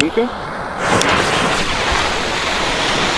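A lit fuse hisses and sputters.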